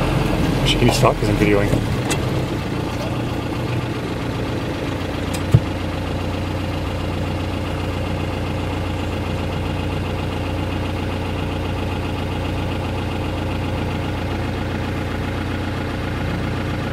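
A Jeep's engine rumbles at low revs as it crawls over rock.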